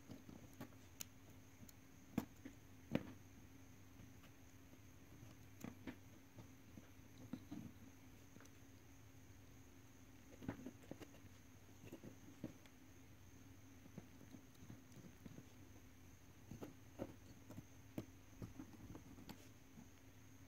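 Fingers tap and click against wires and small parts up close.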